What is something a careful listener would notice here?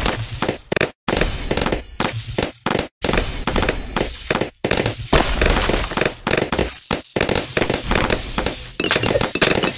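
Balloons pop in quick bursts in a video game.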